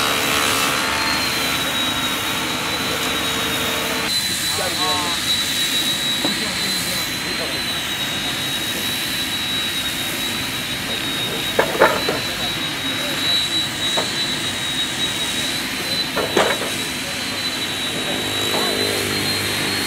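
A table saw whines steadily.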